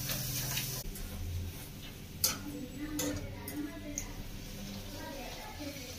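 A metal spoon clinks against a pot.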